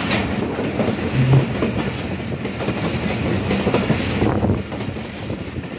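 A vehicle's engine hums steadily as it drives along a road.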